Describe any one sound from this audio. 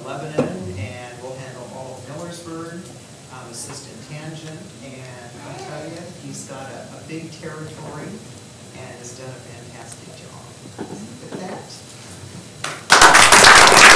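A woman reads out calmly through a microphone.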